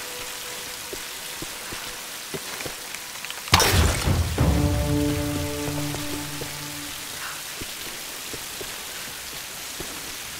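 Rain falls steadily all around.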